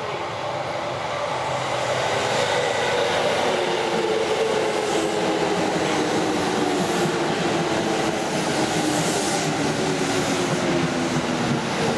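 A train's motors whine and drop in pitch as it slows to a stop.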